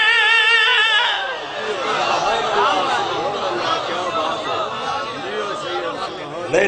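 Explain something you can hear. A man chants with animation through a microphone, his voice booming over loudspeakers.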